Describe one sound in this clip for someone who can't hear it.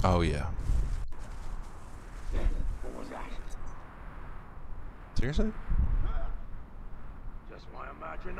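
Leaves rustle as someone creeps through bushes.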